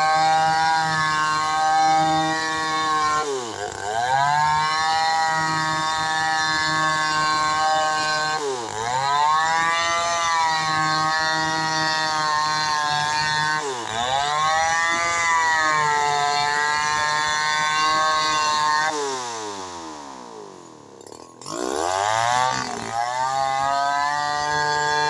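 A chainsaw roars loudly, its engine dipping and rising as it cuts through a log.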